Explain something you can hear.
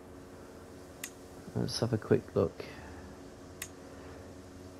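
Soft interface clicks sound as menus open.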